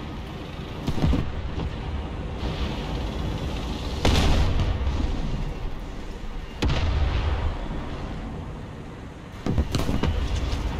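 Tank cannons fire with loud booming blasts.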